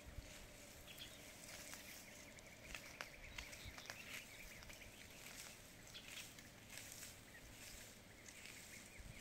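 Dry grass and brush rustle and crackle as plants are pulled up by hand.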